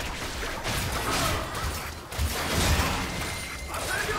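Magic blasts and impacts crackle and boom in a fight.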